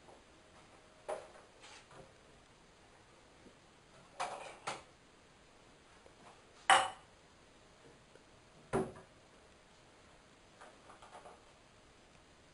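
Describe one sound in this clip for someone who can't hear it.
Dishes clink and knock on a counter.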